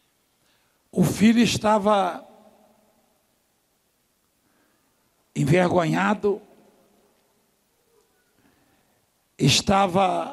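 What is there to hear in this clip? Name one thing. A man preaches with animation into a microphone, in short bursts with pauses between.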